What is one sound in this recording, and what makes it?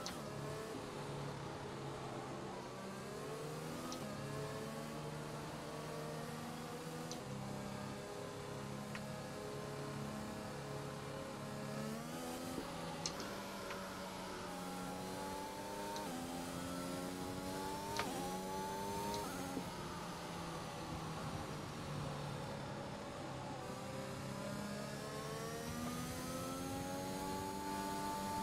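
A racing car engine hums steadily, its pitch climbing and dropping with each gear change.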